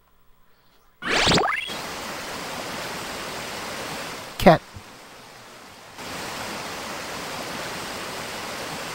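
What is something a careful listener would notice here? A waterfall roars with steady rushing water.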